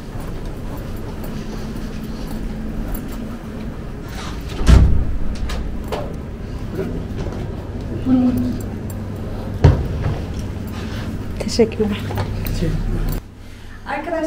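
Suitcase wheels roll and rumble over the floor.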